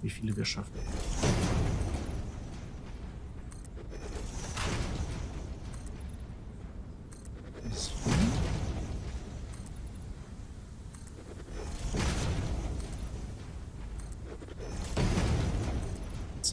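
Heavy blocks drop into place with a whooshing, rumbling burst, again and again.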